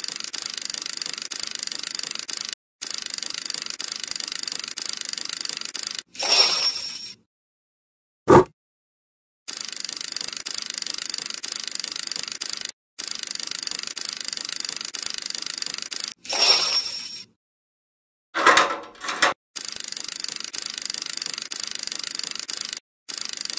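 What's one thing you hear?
Electronic slot machine reels spin with a looping whirring sound effect.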